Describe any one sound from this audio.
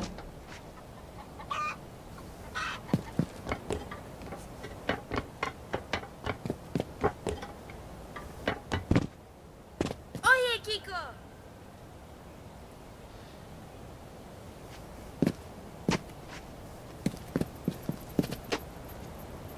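Quick footsteps clatter on roof tiles and stone.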